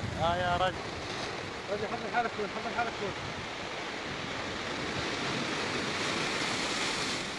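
Surf washes gently over rocks farther off.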